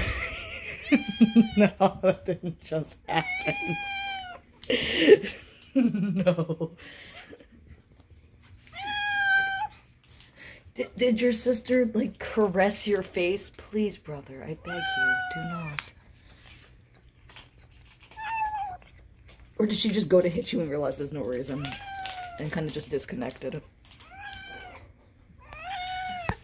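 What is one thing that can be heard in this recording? A domestic cat meows loudly and insistently.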